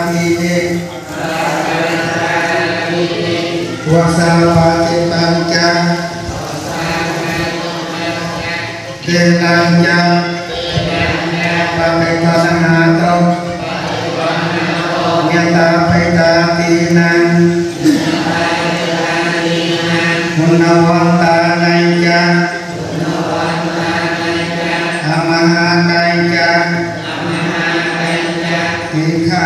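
A large crowd of people chants together in unison.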